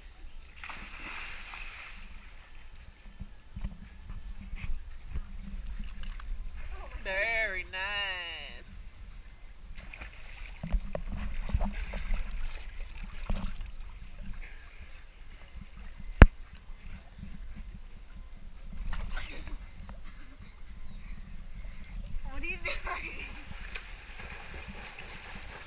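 Water sloshes and laps around swimmers.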